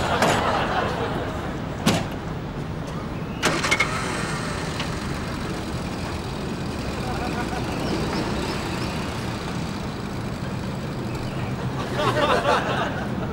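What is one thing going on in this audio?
A small car engine runs at a low idle.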